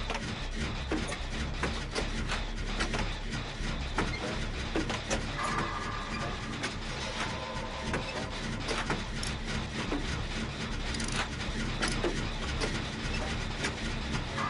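Metal parts clank and rattle as a generator is repaired.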